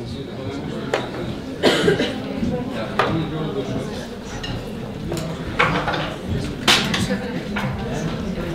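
A drummer taps on drums.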